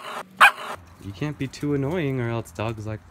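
A puppy whines and yelps in a high voice.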